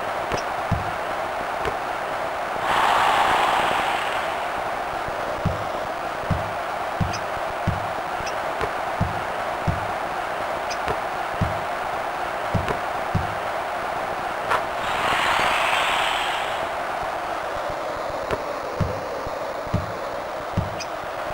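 A basketball bounces with dull, regular thuds on a court.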